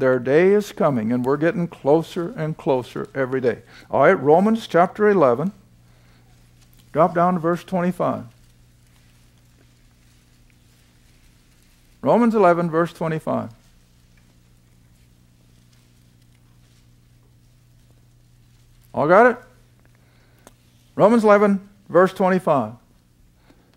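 An elderly man speaks slowly and deliberately into a close microphone, with long pauses.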